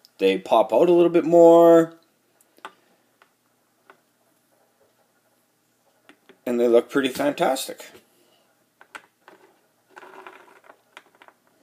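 A small plastic figure clicks down onto a board.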